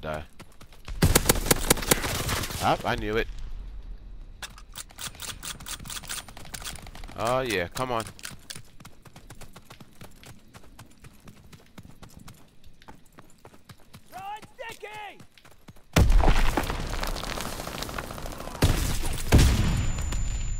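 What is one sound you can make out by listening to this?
A rifle fires rapid, loud shots.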